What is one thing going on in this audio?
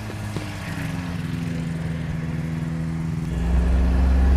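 A small plane drones overhead.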